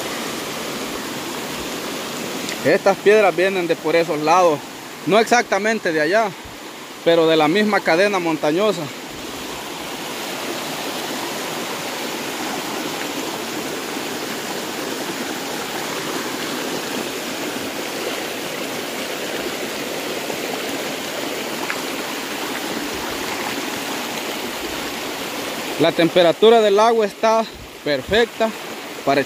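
A shallow stream babbles and rushes over rocks.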